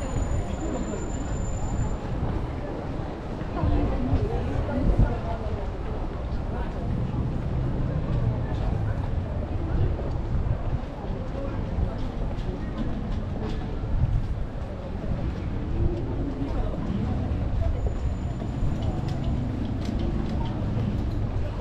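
Footsteps tread on paving at a walking pace.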